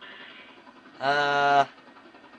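An airplane engine roars overhead.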